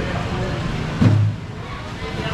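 A plastic crate thuds as it is set down.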